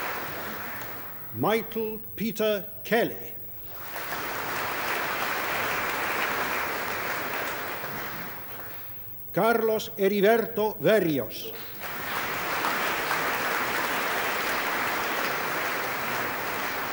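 An audience applauds steadily.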